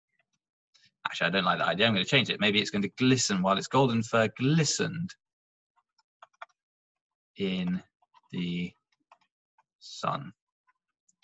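A young man speaks calmly through a microphone, like on an online call.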